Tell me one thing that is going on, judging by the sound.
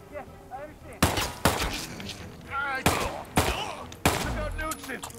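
Pistol shots ring out sharply, several in quick succession.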